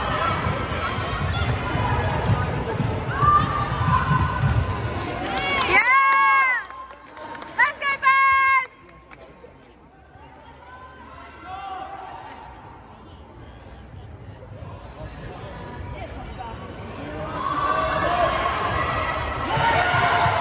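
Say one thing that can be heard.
Young women shout and call to each other in a large echoing hall.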